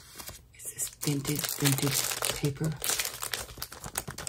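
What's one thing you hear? A plastic sleeve crackles as it is handled.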